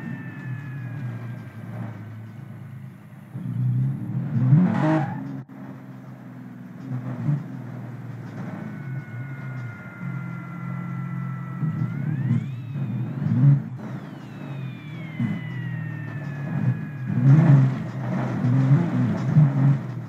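Tyres skid and scrabble on loose gravel.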